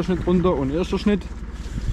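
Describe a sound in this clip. A hand brushes against a plastic sheet with a soft rustle.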